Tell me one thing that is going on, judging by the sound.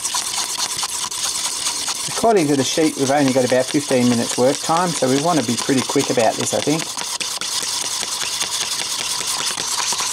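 A wooden stick stirs liquid in a paper cup, scraping softly.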